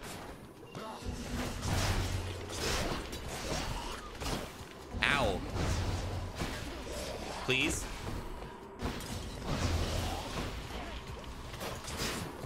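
Magic blasts and heavy hits crash in a fast, busy fight.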